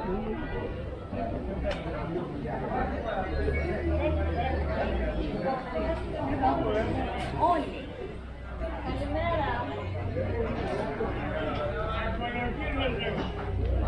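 Many people chatter around in a busy market crowd.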